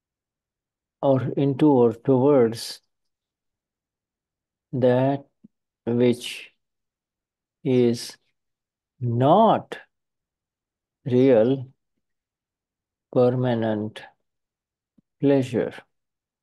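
A man speaks calmly in short phrases over an online call.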